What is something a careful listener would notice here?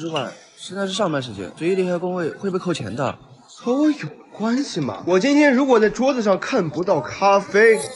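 Another young man answers with irritation, close by.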